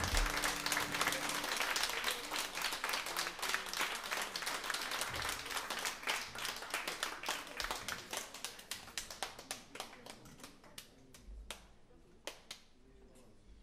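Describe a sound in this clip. Cymbals and drums tap in a quick, busy rhythm, then fade away.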